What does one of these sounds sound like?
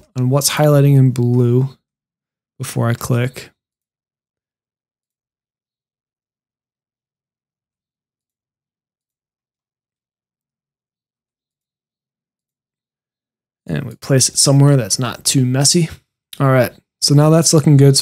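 A man talks calmly and close into a microphone.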